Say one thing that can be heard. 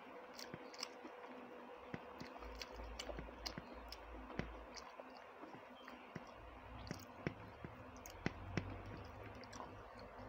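A woman chews food with soft smacking mouth sounds.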